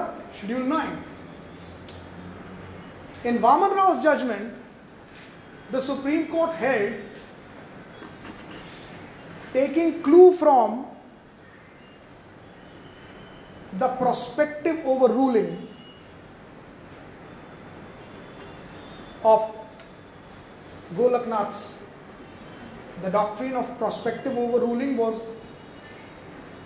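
A man speaks into a microphone with deliberate pauses, heard through a loudspeaker.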